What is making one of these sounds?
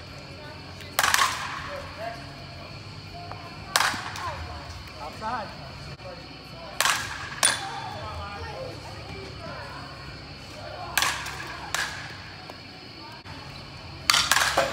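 A bat cracks against a ball again and again, echoing in a large indoor space.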